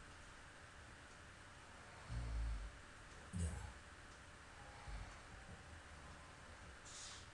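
A small crowd murmurs faintly outdoors.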